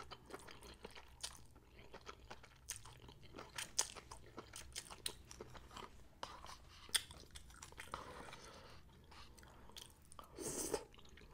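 A woman slurps noodles close to a microphone.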